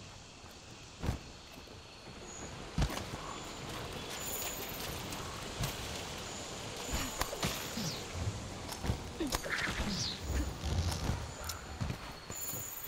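Heavy blows thud and crack sharply.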